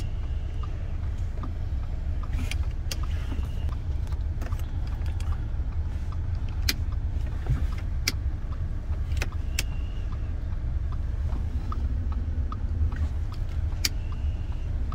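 A finger clicks buttons on a car's console.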